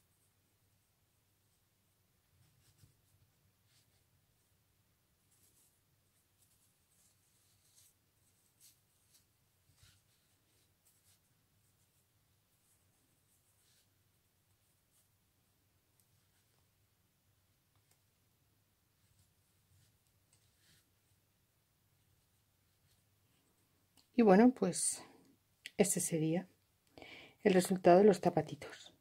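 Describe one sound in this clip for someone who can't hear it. Fingers rustle softly against cloth.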